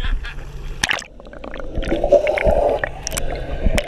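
Water gurgles and rumbles, heard from underwater.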